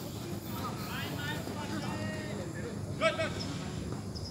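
Young men shout to each other outdoors at a distance.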